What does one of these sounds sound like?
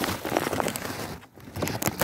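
A swarm of bees buzzes close by.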